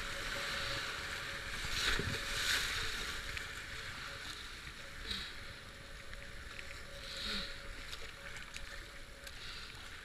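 White water rushes and churns loudly around a kayak.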